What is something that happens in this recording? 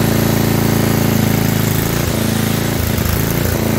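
A reciprocating saw buzzes as it cuts into metal.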